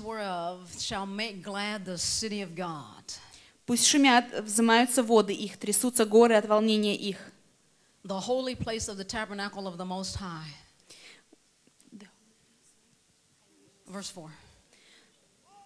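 A woman speaks earnestly into a microphone.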